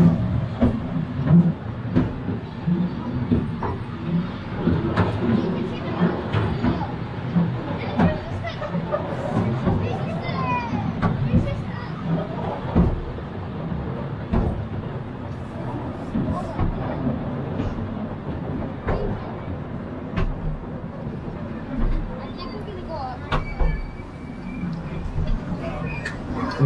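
Metal clanks and knocks sharply now and then inside a railway car.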